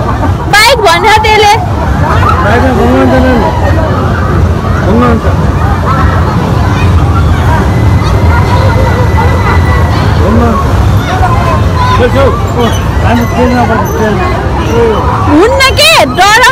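Many adults chatter nearby outdoors.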